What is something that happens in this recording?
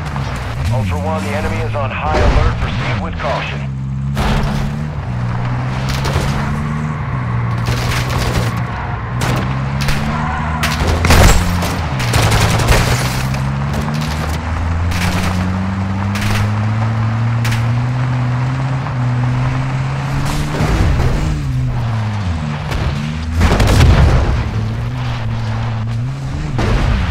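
Tyres crunch and rumble over rough dirt ground.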